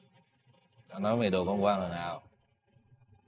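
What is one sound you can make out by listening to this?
A middle-aged man speaks in a low, heavy voice.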